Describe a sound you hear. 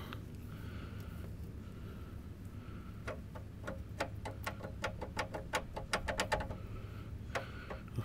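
A hand rubs and taps a rusty metal pipe.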